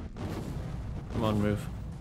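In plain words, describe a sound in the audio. A monster growls and roars deeply.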